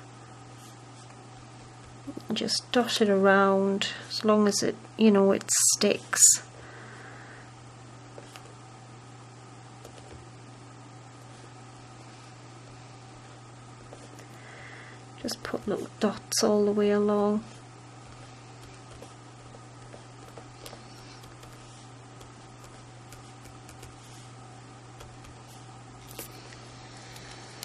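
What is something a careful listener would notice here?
A glue pen dabs softly on paper.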